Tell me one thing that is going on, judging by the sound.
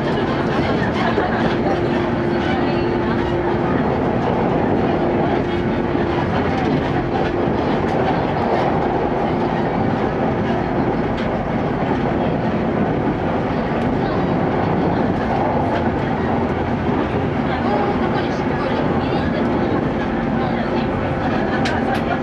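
A train rumbles steadily along the rails, heard from inside a carriage.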